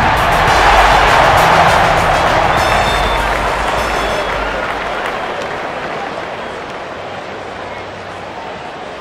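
A stadium crowd roars and murmurs, slowly fading.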